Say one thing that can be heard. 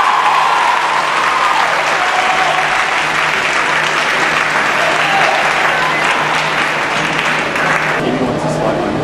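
An audience cheers and screams loudly in a large hall.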